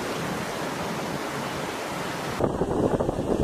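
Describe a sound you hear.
Shallow surf hisses softly over sand.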